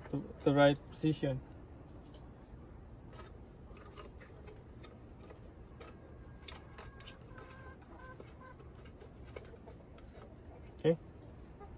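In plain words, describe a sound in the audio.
Metal parts click and tap softly as they are fitted together by hand.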